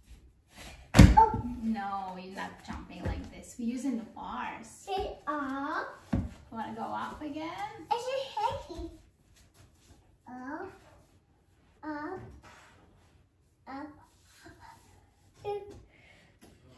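A young woman talks to a child in a warm, encouraging voice.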